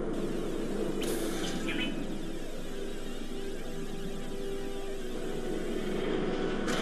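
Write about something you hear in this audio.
Laser weapons fire in short zapping bursts.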